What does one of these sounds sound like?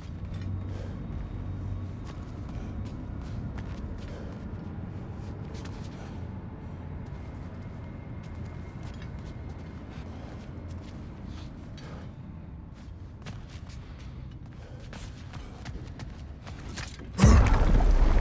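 Heavy footsteps thud on a stone floor.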